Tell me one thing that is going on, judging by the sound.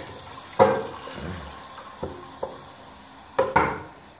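A hand rubs and taps against a ceramic toilet.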